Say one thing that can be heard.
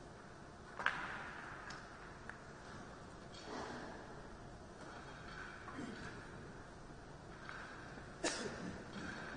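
A billiard ball is set down on a table with a sharp knock.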